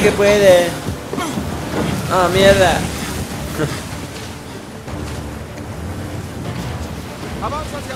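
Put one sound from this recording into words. A boat engine roars over rough waves.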